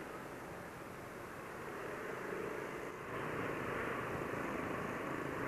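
A motorcycle engine hums steadily and rises slightly as the rider speeds up.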